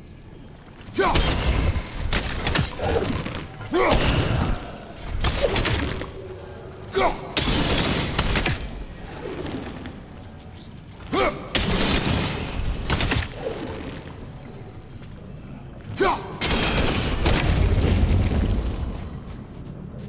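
A glowing growth crackles and bursts loudly in short, repeated blasts.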